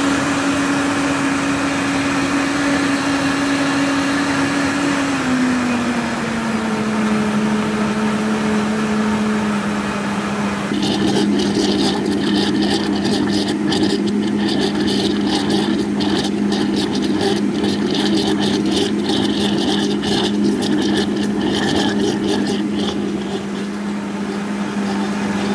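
Liquid churns and sloshes in a blender jar.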